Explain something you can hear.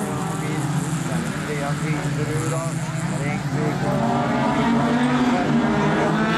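Several rally car engines roar and rev nearby outdoors.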